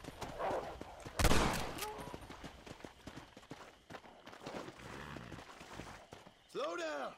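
A horse's hooves thud quickly over soft ground.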